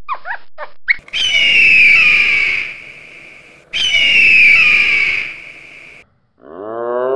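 An eagle gives long, shrill screams.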